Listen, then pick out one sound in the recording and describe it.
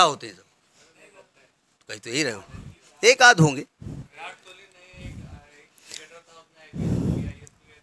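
A middle-aged man speaks calmly and deliberately into a close microphone, with pauses.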